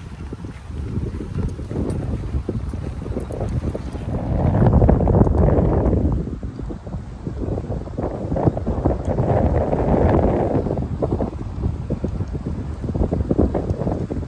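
Wind gusts loudly outdoors, rumbling and buffeting.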